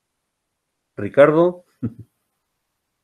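A middle-aged man speaks briefly over an online call.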